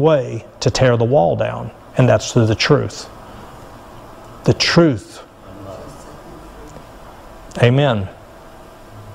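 A middle-aged man speaks calmly into a microphone in an echoing room, with pauses between phrases.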